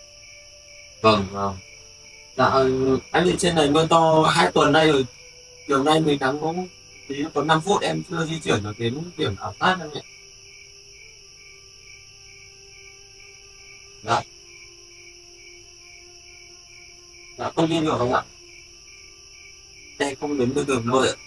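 A young man talks quietly into a phone close by.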